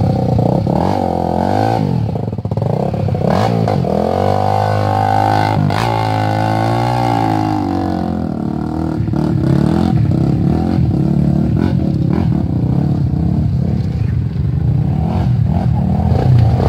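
A dirt bike engine revs loudly close by, rising and falling in pitch.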